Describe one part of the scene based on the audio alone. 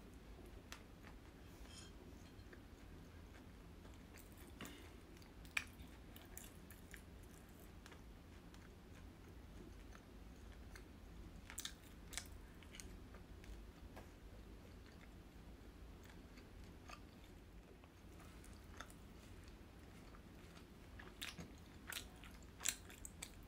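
A young woman chews food close to a microphone, with wet crunchy and smacking sounds.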